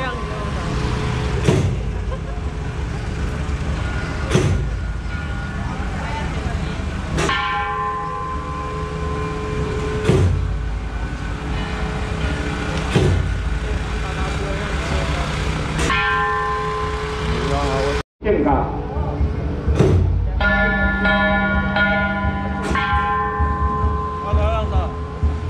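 Loud music with a booming drum beat plays from a loudspeaker.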